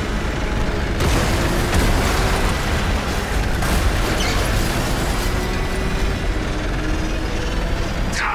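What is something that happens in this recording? Explosions burst with heavy booms and crackling debris.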